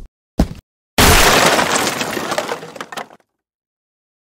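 Splintered wood pieces scatter and clatter.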